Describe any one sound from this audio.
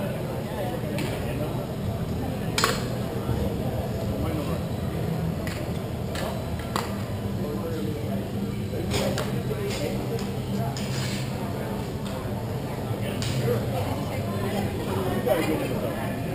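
Pucks and sticks clack sharply now and then in a large echoing rink.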